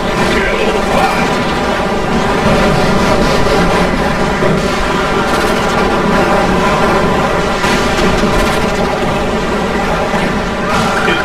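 Laser guns zap and hum as they fire.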